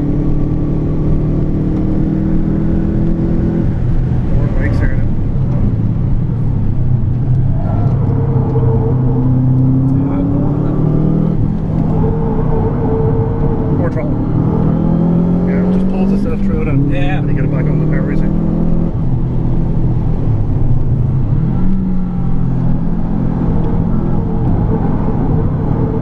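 A car engine roars loudly, revving up and down through gear changes.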